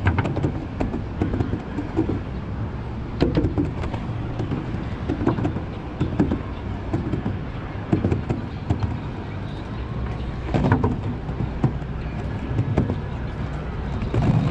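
Footsteps thud on wooden boards at a steady walking pace.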